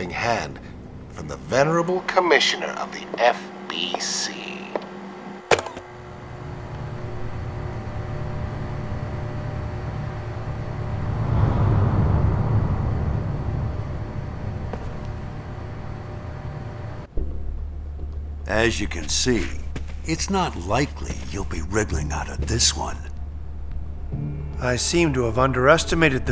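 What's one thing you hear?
An elderly man speaks calmly and gravely, close by.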